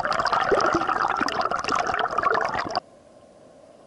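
Water churns and bubbles loudly close by.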